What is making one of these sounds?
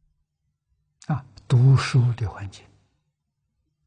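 An elderly man speaks calmly and close to a microphone.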